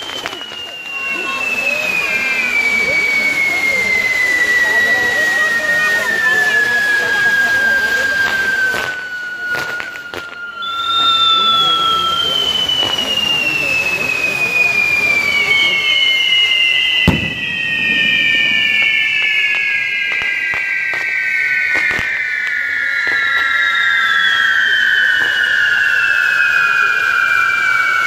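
Fireworks crackle and hiss steadily.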